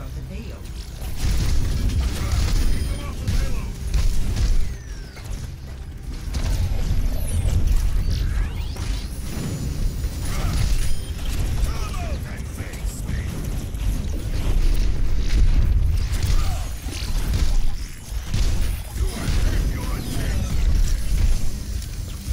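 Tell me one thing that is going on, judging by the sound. Heavy gunfire and explosions boom in rapid bursts.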